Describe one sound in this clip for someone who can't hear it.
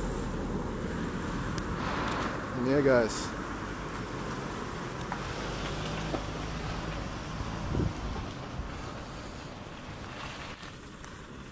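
Wind rustles tree leaves nearby.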